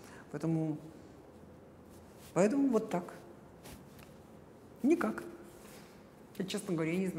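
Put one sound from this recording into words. A middle-aged woman speaks calmly and closely in short bursts with pauses.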